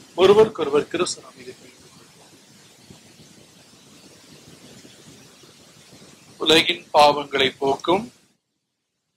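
An elderly man reads out calmly through a microphone.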